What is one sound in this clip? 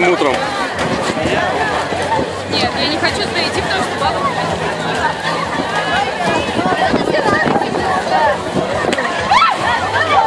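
Feet splash through shallow puddles.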